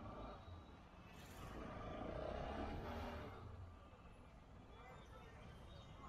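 A motorcycle engine drones past close by.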